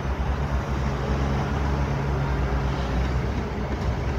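Soil pours from an excavator bucket into a dump truck bed.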